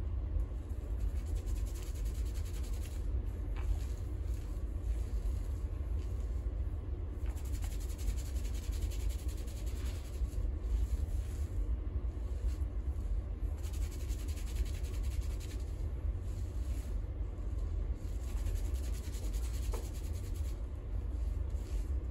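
Fingers rub and squish lathered hair.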